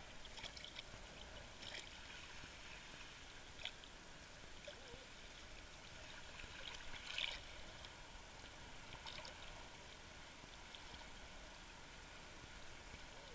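Small waves slosh and splash close by.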